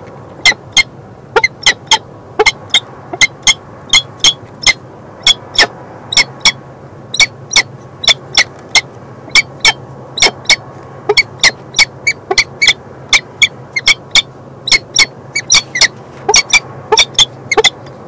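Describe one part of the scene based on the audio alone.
Falcons give sharp, repeated high-pitched calls close by.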